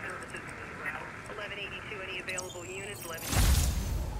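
An electronic tone wavers up and down in pitch.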